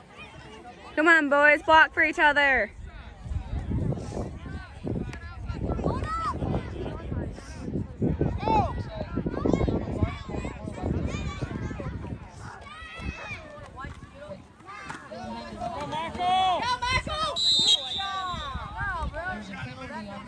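Young players shout to each other on the field.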